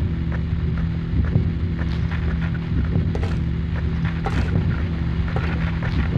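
Footsteps walk on hard ground.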